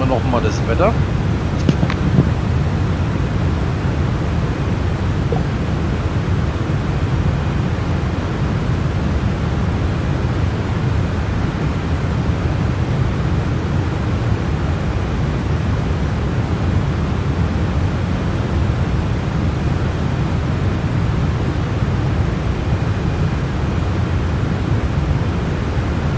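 A jet engine roars with a steady, low drone.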